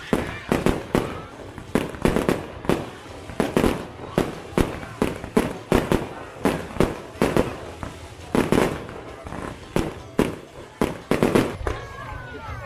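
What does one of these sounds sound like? Fireworks burst with rapid loud bangs.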